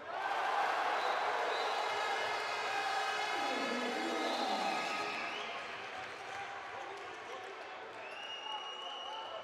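A large crowd cheers and roars in an echoing hall, then quiets down.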